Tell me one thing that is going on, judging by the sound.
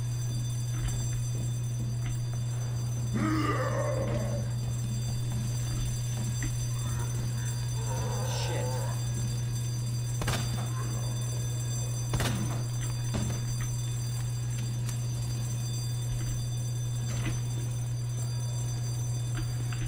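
Flames crackle and roar as a body burns.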